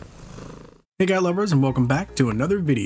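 A cat meows loudly and repeatedly, close by.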